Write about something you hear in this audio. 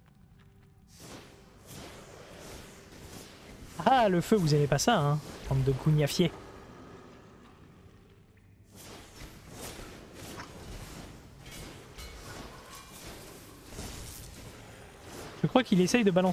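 Magical blasts whoosh and crackle in a fight.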